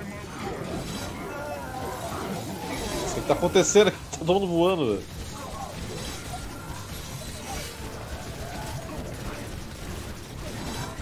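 Game battle sounds clash and burst.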